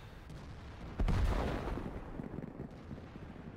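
A loud blast booms and rolls away.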